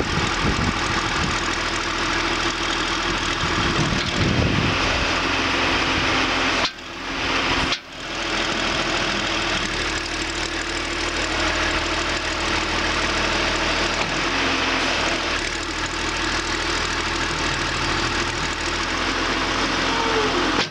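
A backhoe's diesel engine rumbles loudly and steadily close by.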